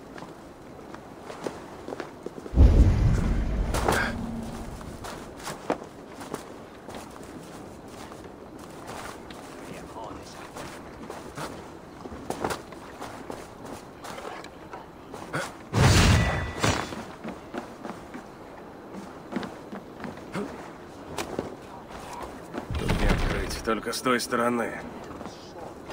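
Footsteps crunch over snow and creak on wooden planks.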